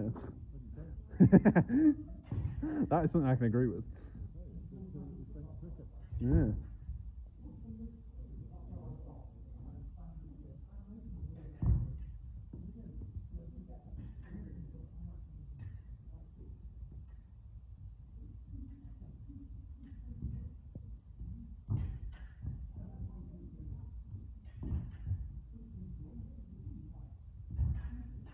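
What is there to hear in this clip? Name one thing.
Swords clash and click together in a large echoing hall.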